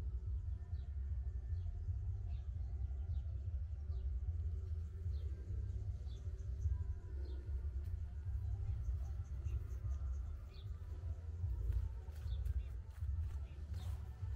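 Wind gusts steadily outdoors with a low rumble.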